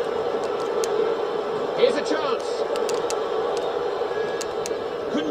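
A stadium crowd roars steadily through television speakers.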